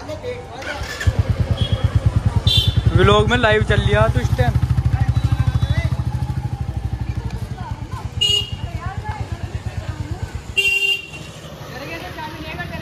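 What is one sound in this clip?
A motorcycle engine idles with a loud, rapid thumping close by.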